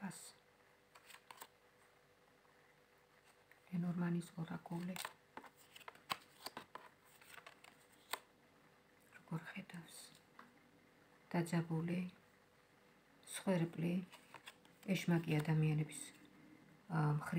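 Playing cards rustle and snap as they are shuffled.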